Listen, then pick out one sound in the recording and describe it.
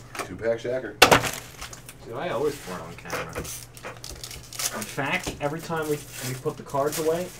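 Foil wrapping crinkles loudly as it is peeled open.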